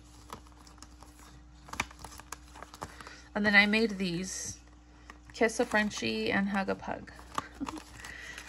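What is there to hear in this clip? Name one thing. Sticker sheets rustle and crinkle as they are shuffled by hand.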